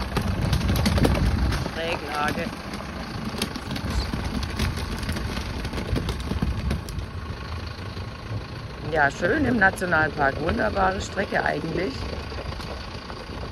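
A truck engine rumbles as the truck drives slowly away and fades.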